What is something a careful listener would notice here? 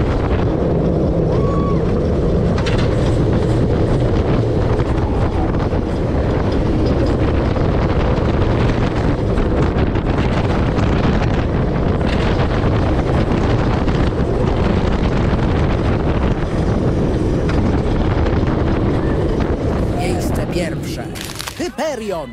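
A roller coaster car rattles and clatters along its track.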